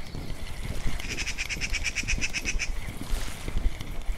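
A fishing reel clicks rapidly as its line is wound in.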